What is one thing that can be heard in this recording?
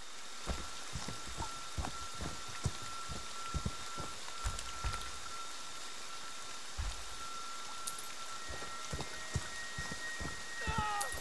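Heavy footsteps thud on dry ground and leaves.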